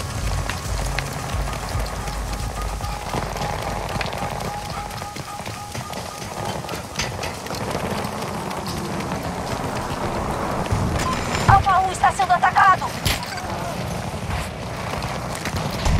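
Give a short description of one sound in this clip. Footsteps run on hard ground.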